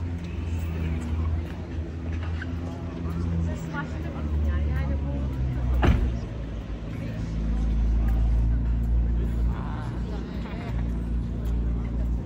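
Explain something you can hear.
A sports car engine idles with a deep, rumbling burble.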